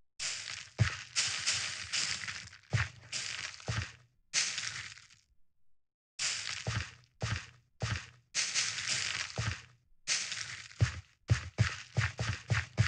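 Short crunchy rustles from harvesting and replanting crops in a video game come in quick bursts.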